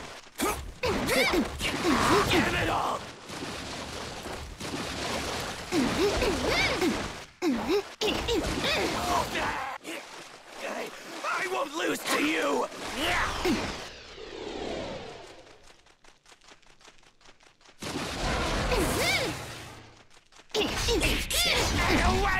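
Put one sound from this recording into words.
Blades slash and swish in quick bursts.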